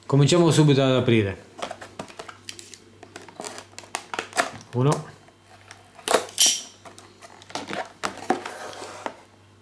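Plastic packaging crinkles as it is handled.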